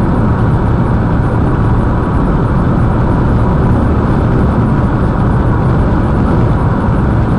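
An engine hums steadily inside a moving car.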